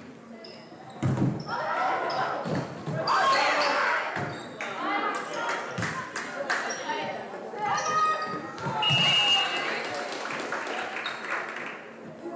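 Girls on the court shout and call out to one another.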